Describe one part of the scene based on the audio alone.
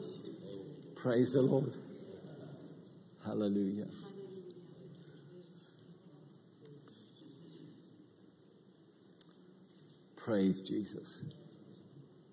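A middle-aged man speaks calmly through a microphone in a large room, in short bursts with pauses.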